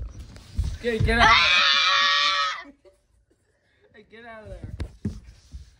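A young boy shouts loudly and excitedly close by.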